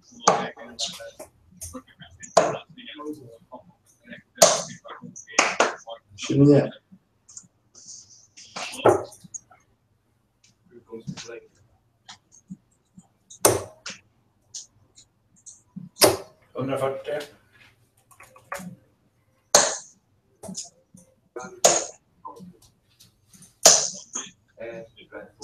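Steel-tip darts thud into a bristle dartboard.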